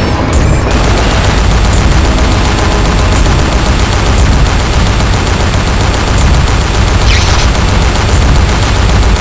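Twin machine guns fire in rapid, continuous bursts.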